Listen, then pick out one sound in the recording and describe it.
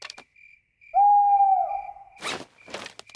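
An owl hoots once.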